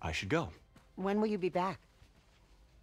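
An older woman asks a question calmly.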